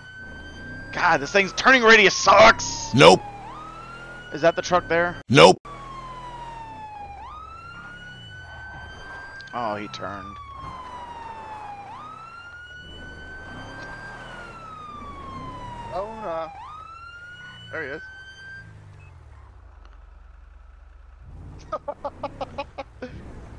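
A siren gives rapid, sharp yelps.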